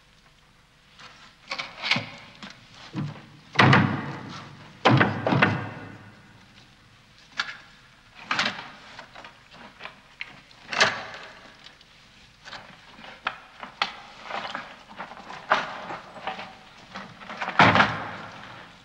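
Heavy cloth rustles as a person moves about.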